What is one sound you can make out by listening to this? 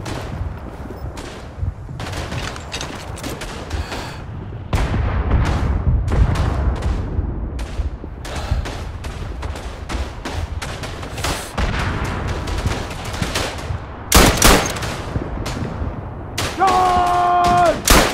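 Explosions boom and rumble in the distance throughout.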